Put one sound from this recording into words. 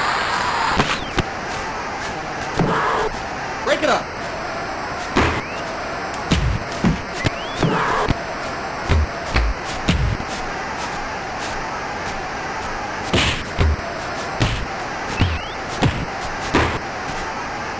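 Boxing punches land with sharp thuds.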